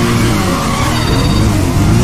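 Tyres squeal as a car spins its wheels.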